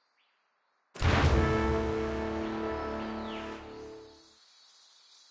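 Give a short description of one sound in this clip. A loud game sound effect rings out as troops set off on a march.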